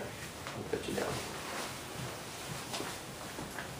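A leather armchair creaks as a man gets up.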